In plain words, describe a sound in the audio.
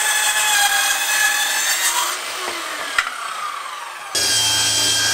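A circular saw whines as it cuts through wood.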